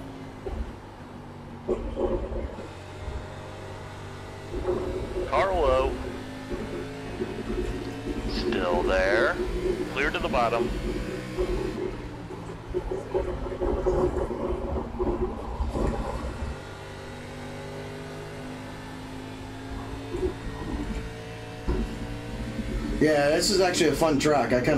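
A race car engine roars steadily, rising and falling as the car speeds up and slows down.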